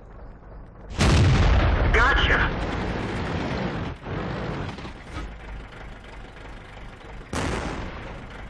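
A tank gun fires with a loud boom.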